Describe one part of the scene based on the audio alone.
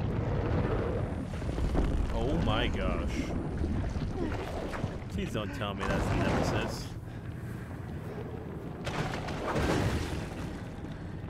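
A huge creature roars and growls.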